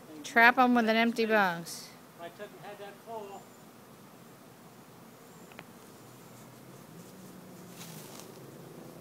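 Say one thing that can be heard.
Bees buzz softly.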